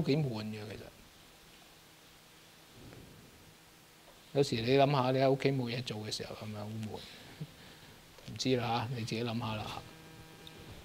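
A middle-aged man speaks calmly and with pauses into a microphone.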